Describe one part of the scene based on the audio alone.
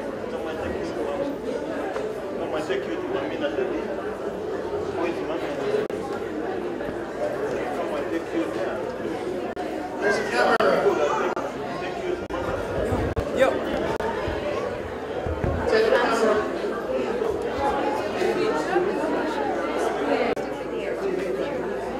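A crowd of guests murmurs and chatters in an echoing hall.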